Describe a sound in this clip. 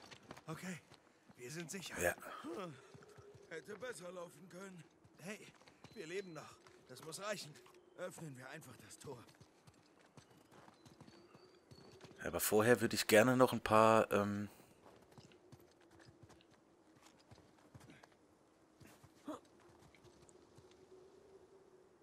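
Footsteps crunch over stone and snow.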